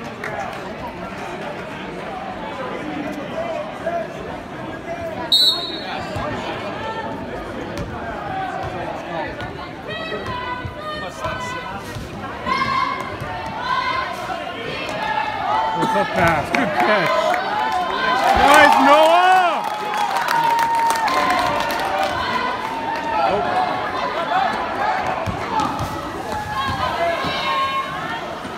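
A crowd chatters and shouts in a large echoing gym.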